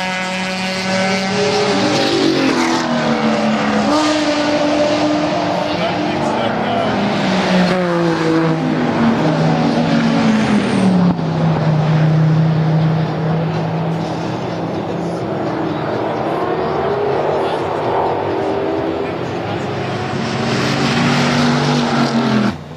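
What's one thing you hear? Racing car engines roar and whine past on a nearby track, rising and falling in pitch.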